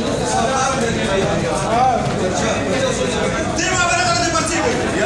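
Several men talk over one another loudly, close by.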